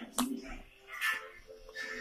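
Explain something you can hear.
A young girl sips a drink from a cup.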